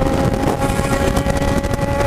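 Another motorcycle passes close by.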